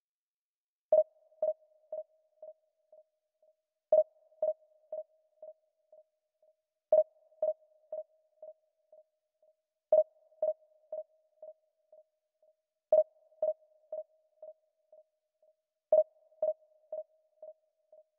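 A game's searching chime pings and echoes away, repeating every few seconds.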